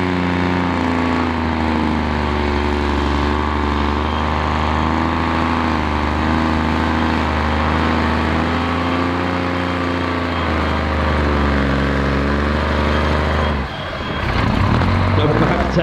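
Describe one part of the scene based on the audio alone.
A heavy truck's diesel engine roars and rises and falls in pitch as it drives close by.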